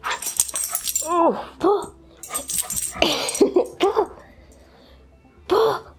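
A dog growls and grumbles close by.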